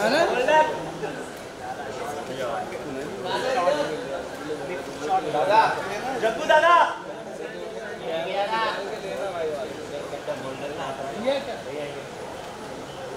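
A crowd of men and women chatter and greet each other close by.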